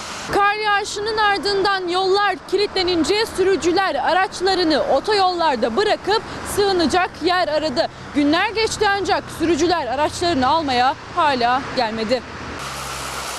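A young woman speaks clearly into a close microphone.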